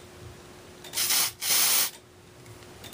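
An aerosol can hisses in a short spray.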